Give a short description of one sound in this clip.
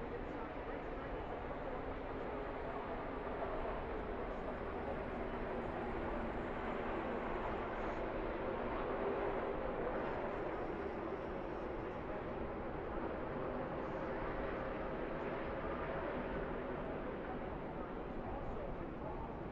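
A race truck engine hums steadily as it rolls slowly along the track.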